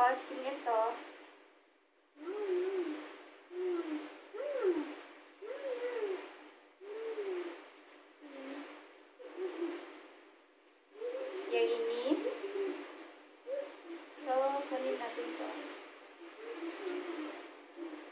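Fabric rustles as a scarf is folded and wrapped.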